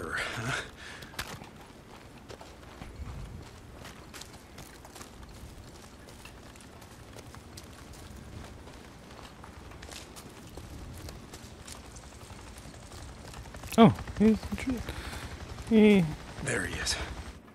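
Footsteps crunch steadily over dry grass and gravel.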